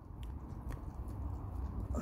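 A dog pants.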